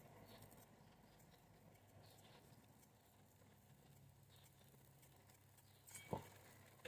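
A knife softly scrapes the skin off a potato.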